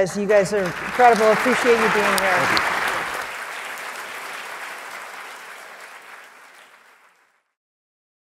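An audience applauds in a large hall, then the applause fades away.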